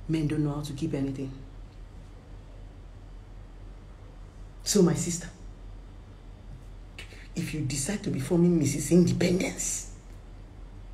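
A woman speaks close to a phone microphone, with animation, in short bursts.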